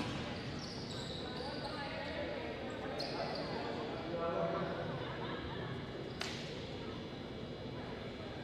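A small crowd murmurs in a large echoing hall.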